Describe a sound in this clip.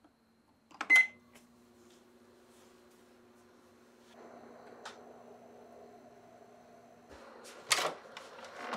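A microwave oven hums as it runs.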